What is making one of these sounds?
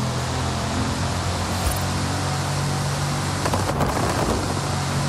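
Tyres hum and wind rushes past a fast-moving car.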